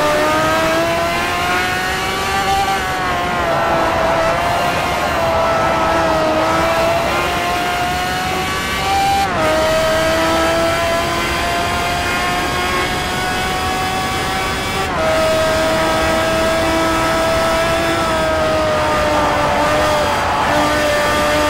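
A racing car engine roars loudly at high revs.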